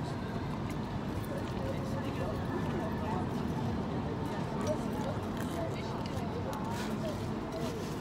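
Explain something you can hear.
Distant crowd chatter fills an outdoor street.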